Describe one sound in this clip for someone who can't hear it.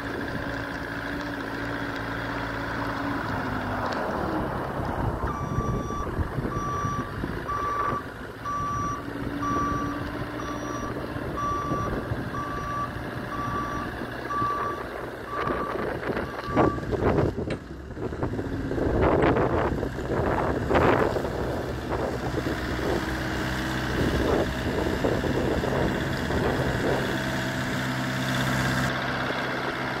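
A diesel forklift engine rumbles steadily nearby.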